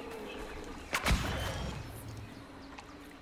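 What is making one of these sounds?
A sudden burst goes off with a loud whoosh.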